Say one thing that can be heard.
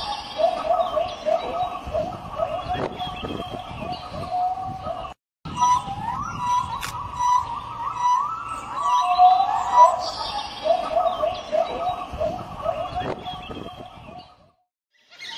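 A wild dog makes short, repeated whistling calls.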